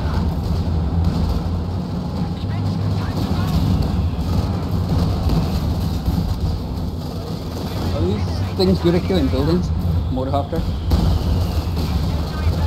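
Half-track engines rumble low.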